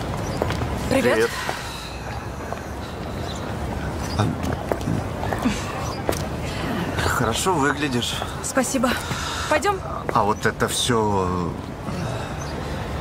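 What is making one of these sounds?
A young man talks earnestly nearby.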